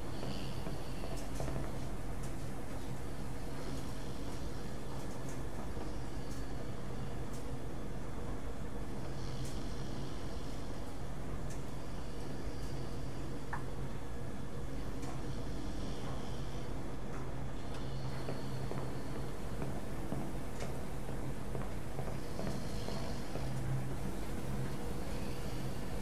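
Washing machines hum and rumble steadily.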